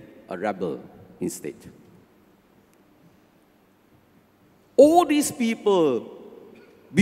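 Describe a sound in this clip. An elderly man speaks with feeling into a microphone in a reverberant hall.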